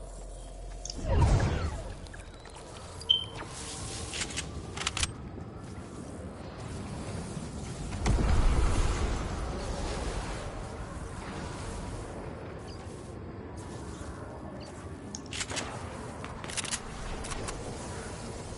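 A low stormy rumble swells and roars.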